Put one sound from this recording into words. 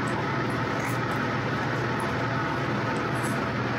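Liquid pours into a bowl.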